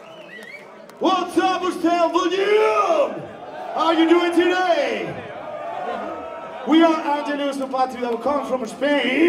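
A man screams and sings into a microphone through loudspeakers.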